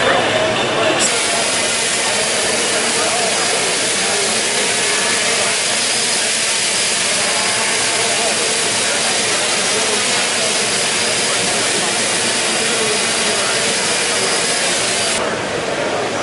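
A drone's propellers whir steadily close by.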